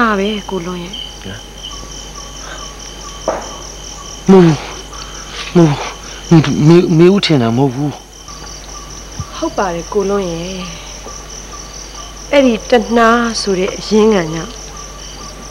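A middle-aged man speaks intently, close by.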